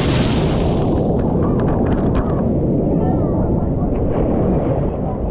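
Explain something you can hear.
A body plunges into a pool with a splash.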